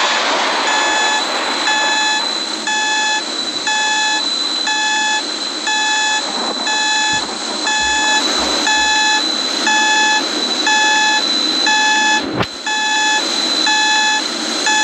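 A cockpit stall warning alarm beeps over and over at an even pace.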